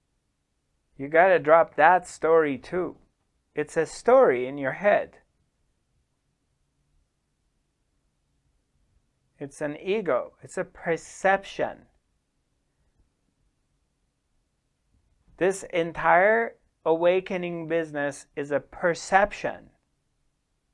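A middle-aged man speaks calmly into a close microphone, pausing between phrases.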